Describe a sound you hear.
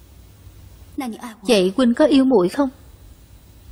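A young woman asks a soft question, close by.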